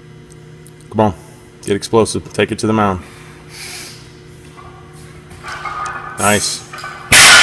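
A man grunts and breathes hard with effort nearby.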